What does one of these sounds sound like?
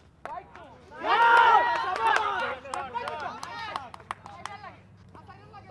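A crowd of onlookers cheers and shouts loudly.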